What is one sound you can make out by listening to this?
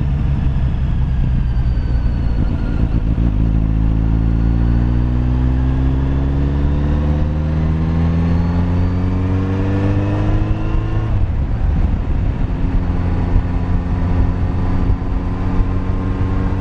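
A motorcycle engine hums steadily and rises in pitch as the bike speeds up.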